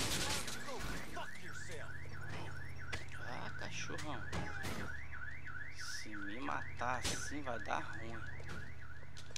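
A car alarm wails up and down.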